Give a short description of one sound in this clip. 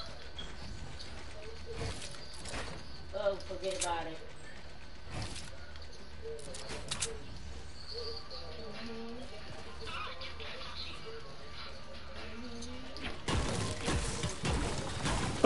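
Building pieces clack and snap into place in a video game.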